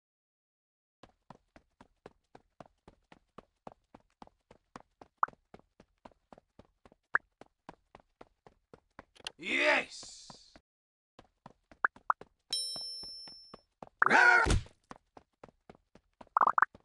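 Quick footsteps patter in a steady rhythm.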